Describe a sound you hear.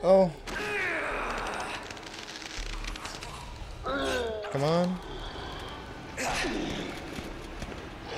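A monster snarls and growls.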